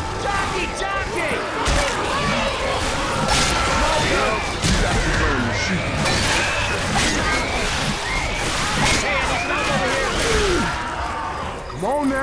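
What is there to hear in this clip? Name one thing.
A woman screams and wails close by.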